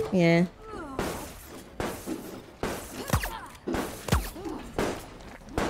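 A rifle fires several shots in quick succession.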